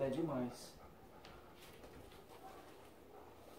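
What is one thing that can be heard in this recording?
A dog pants close by.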